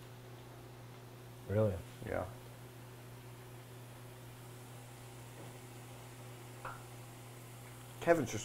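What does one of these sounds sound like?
Hot oil bubbles and sizzles steadily in a deep fryer.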